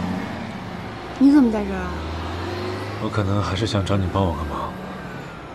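A young woman asks a question quietly.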